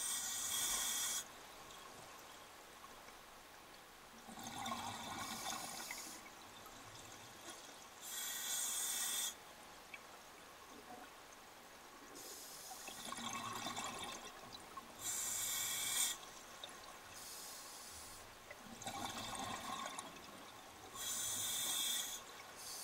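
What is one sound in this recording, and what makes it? Bubbles from a diver's breath rush and gurgle in regular bursts.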